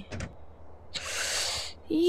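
A plane door creaks open.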